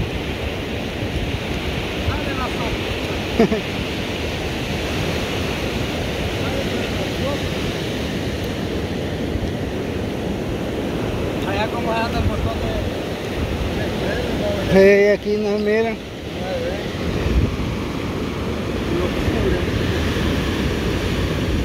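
Waves break and wash up on a shore in a steady roar.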